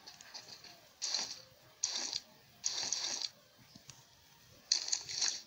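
Footsteps crunch on dry ground in short bursts.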